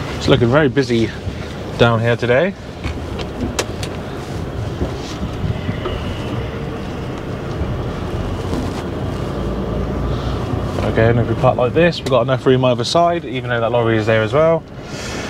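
A truck engine rumbles steadily as the truck rolls slowly.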